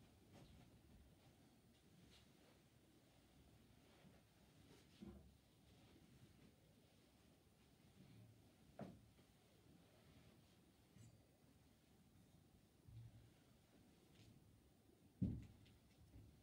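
Objects knock and clink softly as a man handles them on a table.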